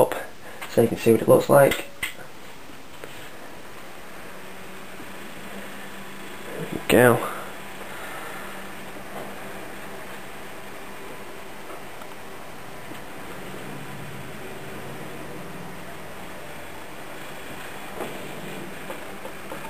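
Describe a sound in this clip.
Computer cooling fans whir steadily.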